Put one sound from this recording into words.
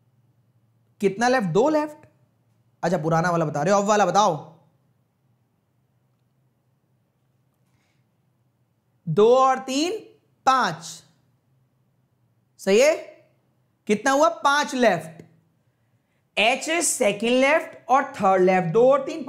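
A man speaks clearly into a close microphone, in short bursts with pauses, as if teaching.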